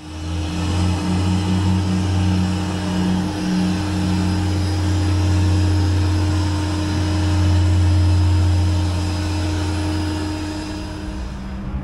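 A jet aircraft's engine hums loudly and steadily outdoors.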